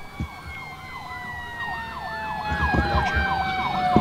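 A fire engine siren wails and grows louder as it approaches.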